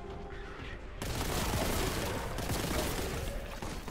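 A rapid-fire gun blasts loudly, over and over.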